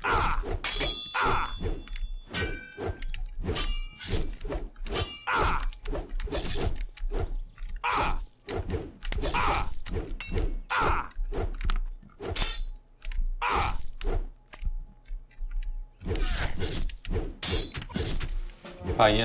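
Swords clash and strike in quick, repeated blows.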